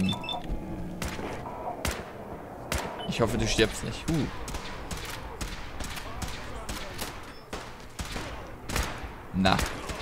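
Laser rifle shots fire in quick bursts.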